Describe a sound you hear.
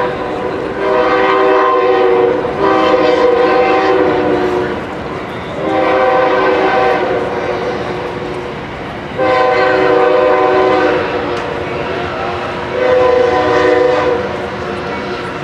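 A marching band plays in bursts of loud, held notes outdoors.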